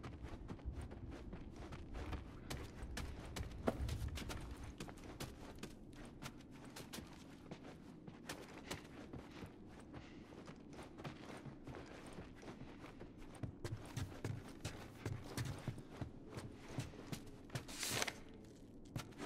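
Footsteps thud on wooden floors and stairs.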